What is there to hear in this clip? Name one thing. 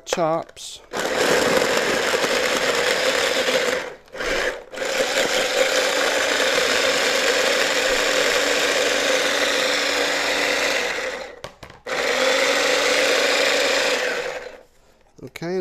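A small electric food chopper whirs in loud bursts.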